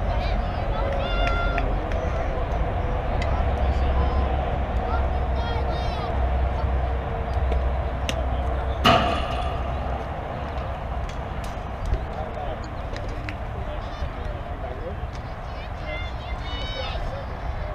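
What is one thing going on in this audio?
Young girls call out and cheer across an open field.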